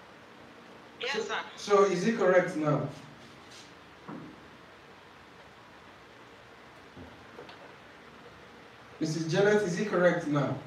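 A young man speaks into a microphone, close by, in a calm, teaching manner.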